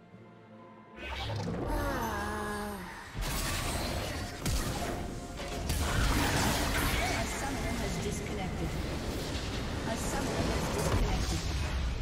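Game spell effects and hits clash in a busy fight.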